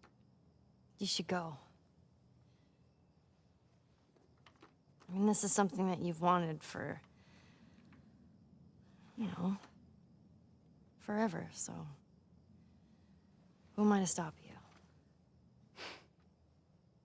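A teenage girl speaks softly and hesitantly, close by.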